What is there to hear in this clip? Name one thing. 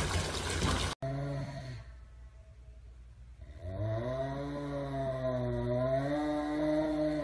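A serval growls low while holding food in its mouth.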